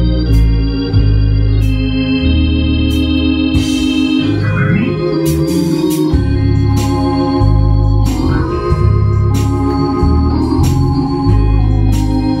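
A deep bass line plays steadily.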